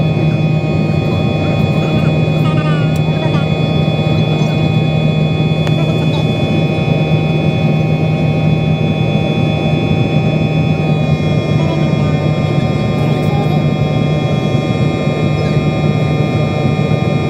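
Jet engines roar steadily with a loud, even whine heard from inside an airliner cabin.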